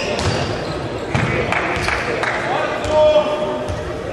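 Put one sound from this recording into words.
A ball thuds on the floor.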